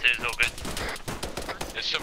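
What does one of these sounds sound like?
A rifle fires single shots close by.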